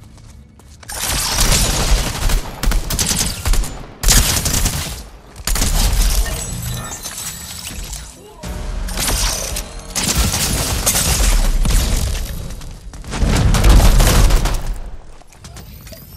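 Gunshots fire in quick bursts.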